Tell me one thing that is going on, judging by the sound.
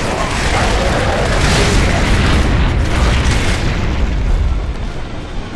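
Rapid gunfire blasts loudly and echoes.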